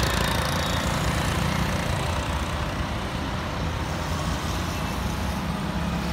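An auto-rickshaw engine putters past.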